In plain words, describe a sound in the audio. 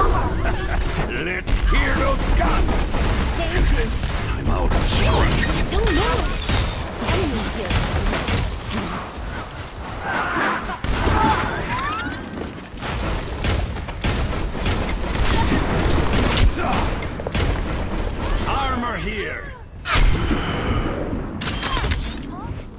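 A game's gun fires in rapid bursts.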